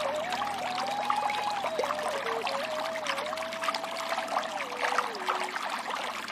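Water rushes and splashes over rocks close by.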